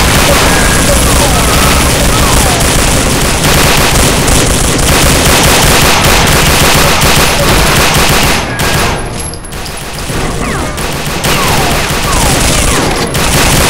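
Twin machine guns fire in loud, rapid bursts.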